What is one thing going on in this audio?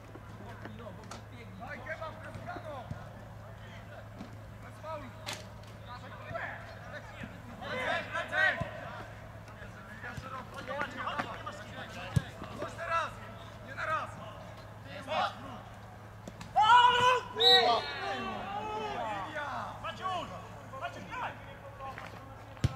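Young men shout and call to each other across an open field, some distance away.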